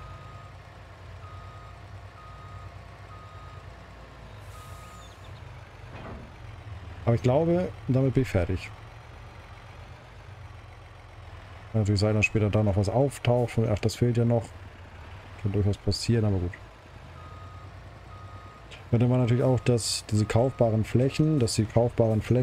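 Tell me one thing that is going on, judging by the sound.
A truck engine hums low and steady.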